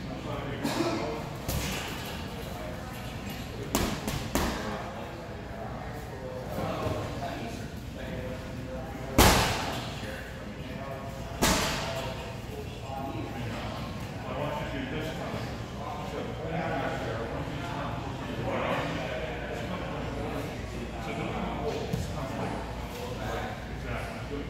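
Bodies thud and slap onto padded mats as people grapple.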